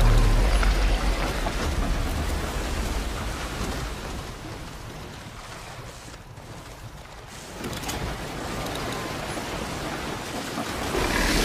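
Rough water surges and splashes loudly nearby.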